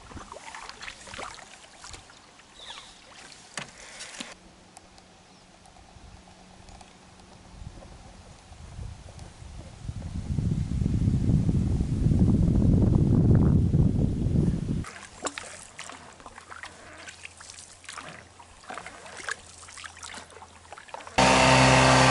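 A paddle dips and splashes in calm water.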